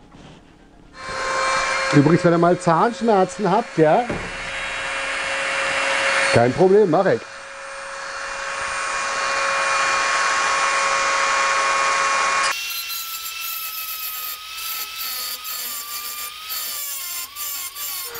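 A small rotary tool whirs with a steady high whine.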